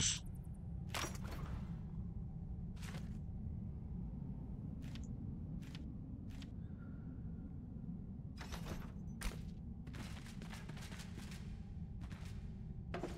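Soft clicks tick now and then as menu options change.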